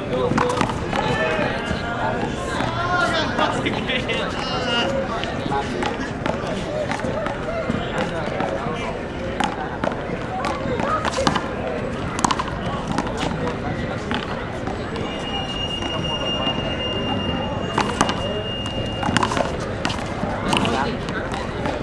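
Young men call out and talk to each other outdoors.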